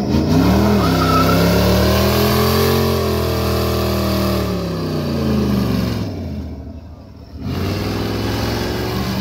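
A V8 car engine revs hard during a burnout.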